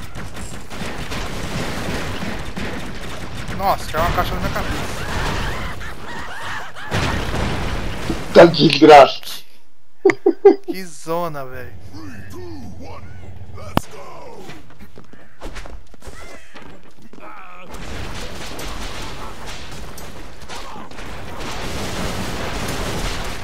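Gunfire rattles rapidly in a video game.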